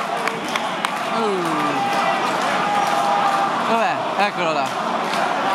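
Members of a crowd whistle shrilly.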